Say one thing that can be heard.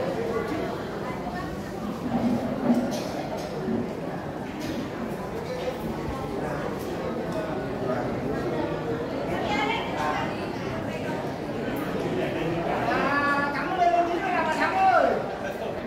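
A crowd of men and women murmurs and chatters in a large echoing hall.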